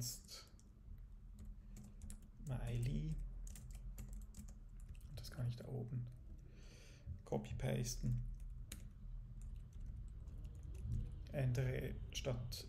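Keys click on a computer keyboard in short bursts.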